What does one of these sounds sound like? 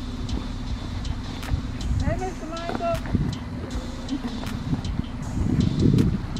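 A woman's footsteps tap on pavement outdoors.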